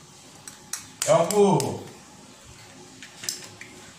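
An egg cracks open with a sharp tap.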